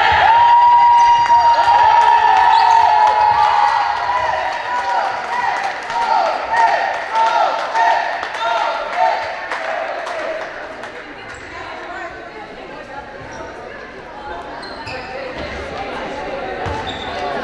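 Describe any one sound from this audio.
Young girls shout and cheer excitedly in a large echoing hall.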